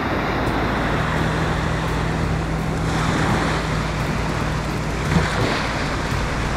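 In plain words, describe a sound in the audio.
A small motorboat engine hums steadily in the distance.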